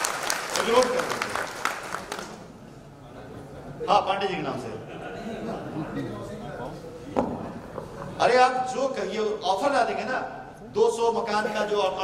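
A man speaks with animation through a microphone over loudspeakers.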